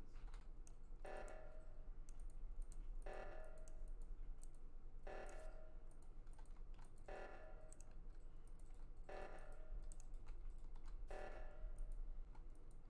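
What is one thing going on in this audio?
An alarm blares in short bursts about every two seconds.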